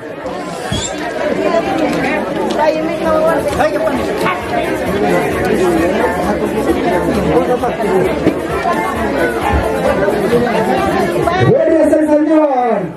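A crowd of men and women chatter and talk all around, close by.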